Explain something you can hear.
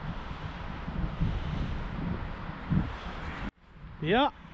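Wind gusts against the microphone outdoors.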